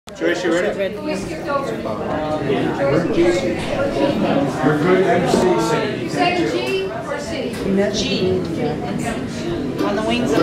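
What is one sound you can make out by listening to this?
Several men and women talk and chatter nearby.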